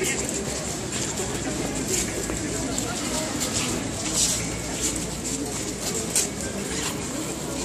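A large crowd murmurs and talks outdoors.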